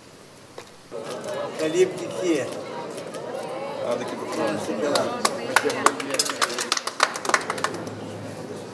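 A crowd of men and women chatters and cheers loudly.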